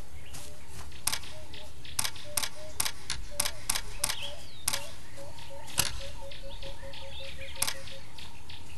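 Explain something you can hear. Key clicks tap out on a phone touchscreen keyboard.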